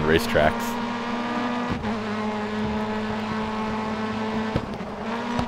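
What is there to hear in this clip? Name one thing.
A race car engine roars at high revs as the car speeds up.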